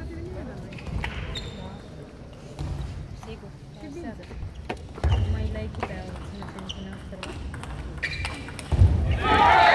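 A ping pong ball clicks back and forth off paddles and a table in a rally.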